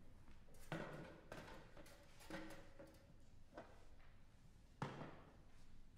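A metal music stand clanks as it is adjusted.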